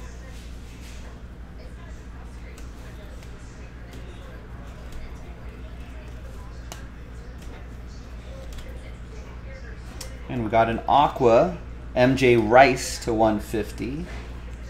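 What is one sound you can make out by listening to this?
Trading cards shuffle and slide against each other.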